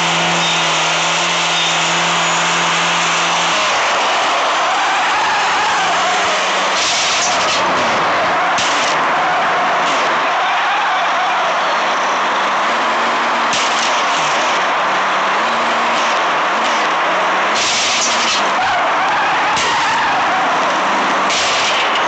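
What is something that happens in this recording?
A motorcycle engine hums steadily and shifts in pitch as the bike rides along.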